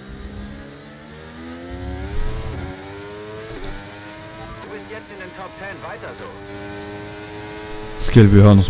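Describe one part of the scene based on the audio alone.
A racing car engine revs up sharply through the gears.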